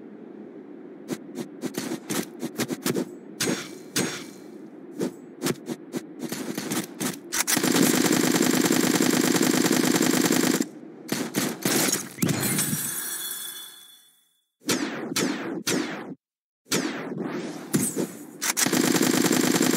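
Guns fire in quick, sharp shots.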